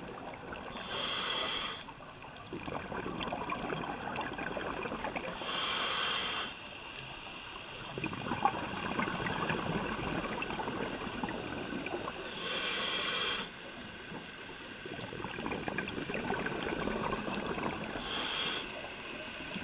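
Scuba bubbles rush and gurgle close by in regular bursts underwater.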